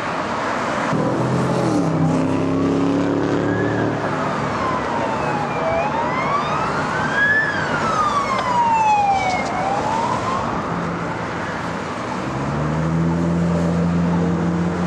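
A truck engine rumbles close by.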